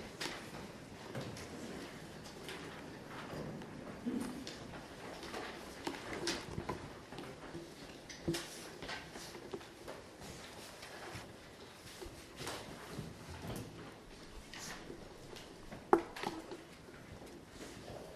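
Children talk and murmur nearby in a busy room.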